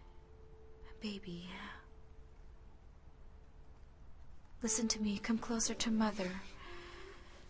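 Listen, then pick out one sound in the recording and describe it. A young woman speaks softly and gently close by.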